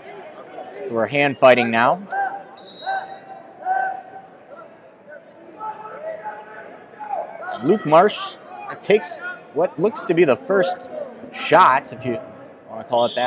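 Spectators shout loudly in a large echoing hall.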